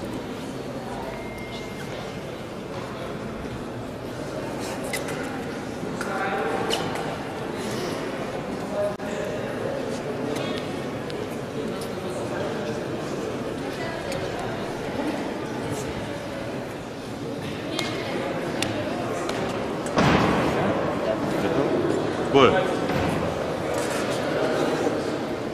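Footsteps shuffle on a hard floor in a large echoing hall.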